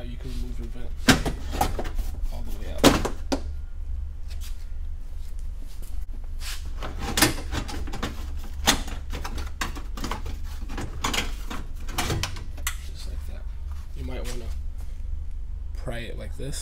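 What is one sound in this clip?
Plastic trim panels clatter and knock as they are pulled out and handled.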